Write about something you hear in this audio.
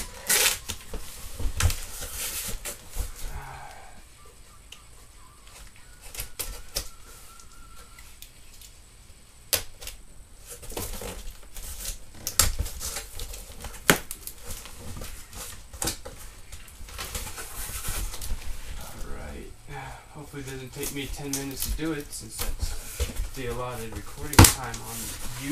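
Hands knock and thump against a cardboard box.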